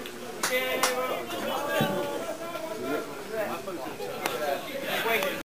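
Men shout and cheer outdoors.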